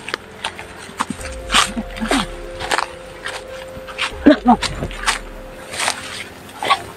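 Footsteps crunch through dry leaves and grass.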